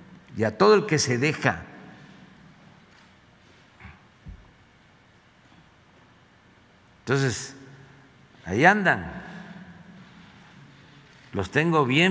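An elderly man speaks emphatically into a microphone, with pauses.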